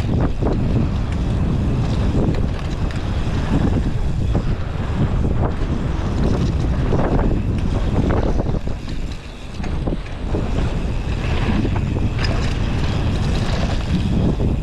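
Bike tyres crunch and rattle over a dirt trail.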